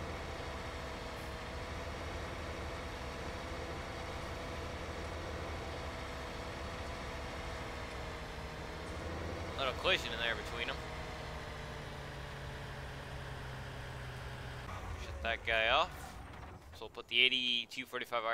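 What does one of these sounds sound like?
A tractor engine hums steadily and then stops.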